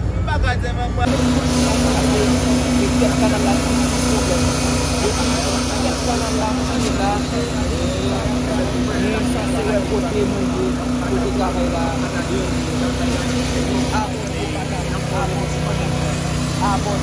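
A machine engine hums steadily nearby.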